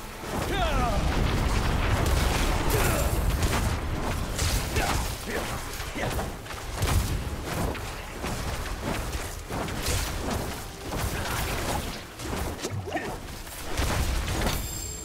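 Fiery spell blasts whoosh and crackle in a game.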